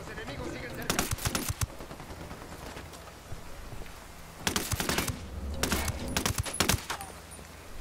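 Rapid gunfire bursts out in short volleys.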